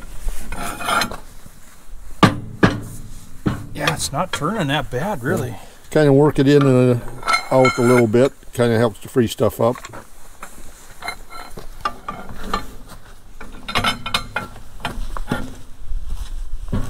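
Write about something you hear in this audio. A ratchet wrench clicks against metal.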